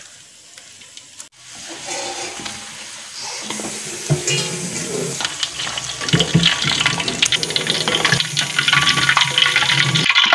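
A wooden spatula scrapes and knocks against a metal pan.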